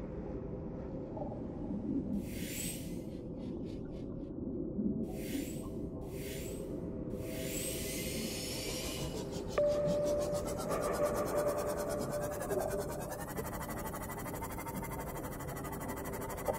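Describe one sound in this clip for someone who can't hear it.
A small submarine's motor hums steadily as it glides underwater.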